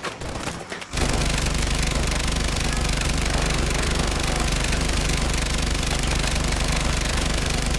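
Rapid gunfire rattles loudly and without pause.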